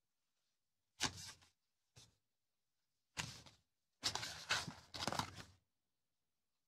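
Paper cutouts rustle and crinkle in hands.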